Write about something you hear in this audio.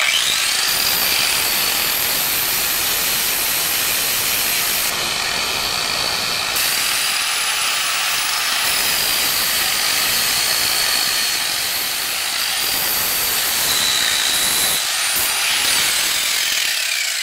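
An angle grinder whines loudly at high speed.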